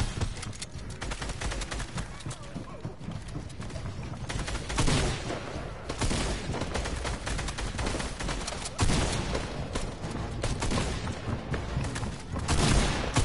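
Footsteps patter quickly on stairs.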